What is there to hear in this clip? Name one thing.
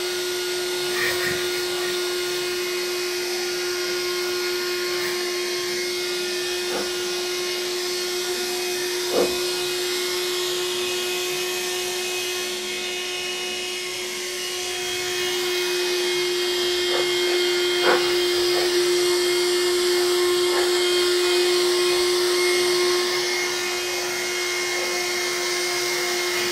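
A handheld vacuum cleaner hums steadily.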